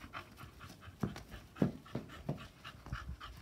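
Footsteps thud softly on grass as a child runs.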